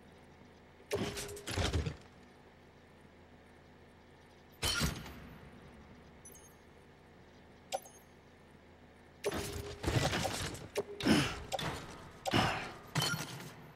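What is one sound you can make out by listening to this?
Heavy cargo containers thump and clatter as they are loaded onto a back rack.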